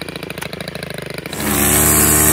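A petrol string trimmer engine putters at idle.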